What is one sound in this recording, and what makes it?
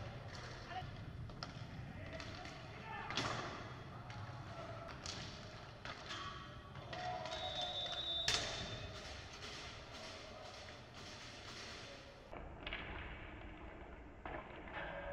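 Skates rumble across a wooden floor.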